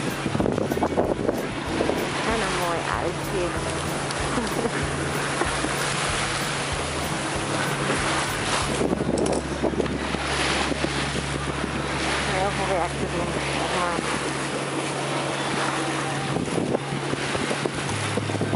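Waves splash and rush against a boat's hull.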